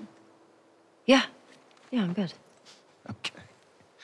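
A man speaks calmly and warmly.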